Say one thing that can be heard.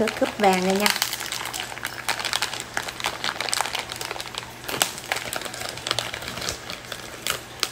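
Plastic wrap crinkles as it is unwrapped.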